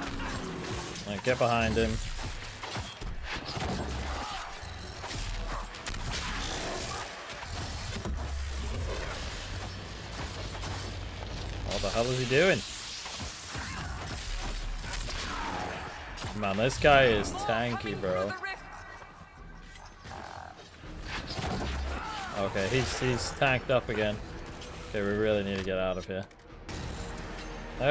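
Magic spells crackle and boom in a fierce battle.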